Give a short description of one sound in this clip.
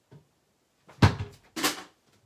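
A small book thumps down onto a table.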